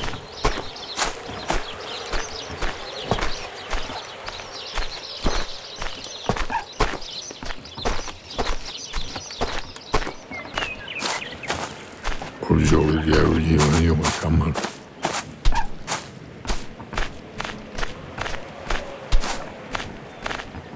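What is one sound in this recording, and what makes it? A horse's hooves clop at a steady walk.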